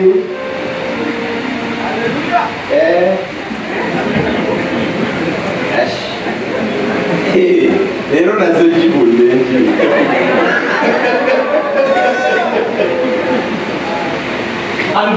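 A man speaks with animation into a microphone, echoing through loudspeakers in a large hall.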